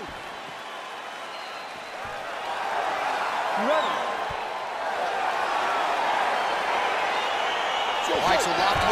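A large crowd cheers and roars in a big echoing arena, growing louder.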